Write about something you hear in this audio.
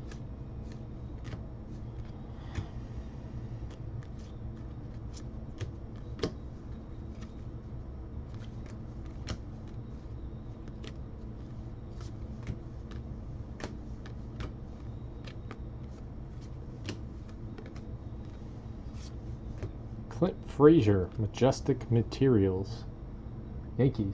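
Trading cards flick and slide against each other as they are shuffled by hand.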